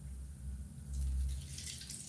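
Oil pours into a metal wok.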